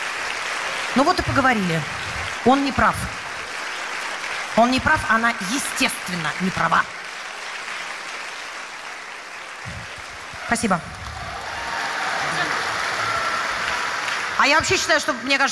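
A woman speaks calmly into a microphone over loudspeakers, with pauses.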